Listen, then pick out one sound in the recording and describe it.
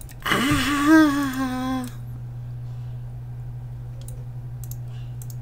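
Soft clicks sound as items are placed in a game menu.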